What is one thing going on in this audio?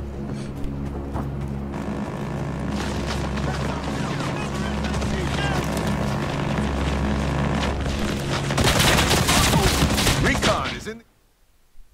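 Distant battle noise rumbles steadily.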